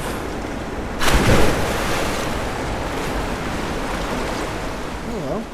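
A waterfall pours steadily nearby.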